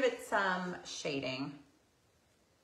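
A woman speaks brightly and close by.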